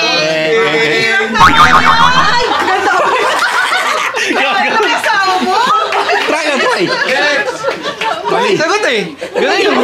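A group of adults chatter and laugh nearby.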